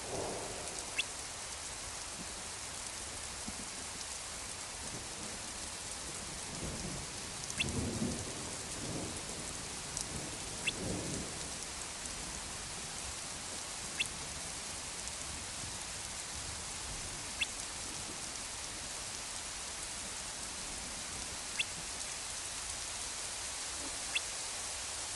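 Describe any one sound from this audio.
A short, bright blip sounds now and then.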